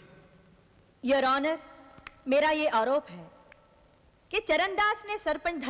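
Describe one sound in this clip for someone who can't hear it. A woman speaks with emotion, raising her voice.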